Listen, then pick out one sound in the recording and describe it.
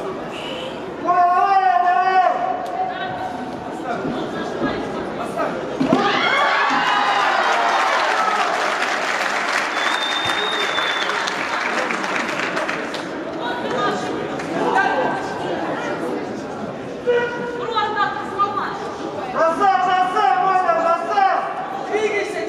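Young male fighters shout sharply during a bout.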